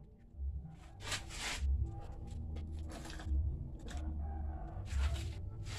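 A metal tap clicks and scrapes as it is screwed in.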